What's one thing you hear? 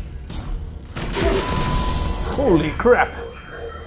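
An explosion booms with a roar.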